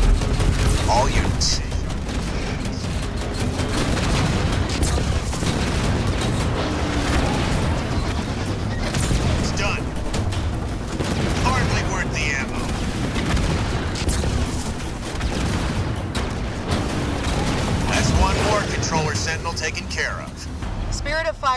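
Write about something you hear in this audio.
Guns fire in rapid bursts during a battle.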